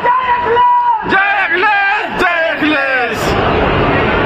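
A man chants loudly through a loudspeaker in an echoing tent.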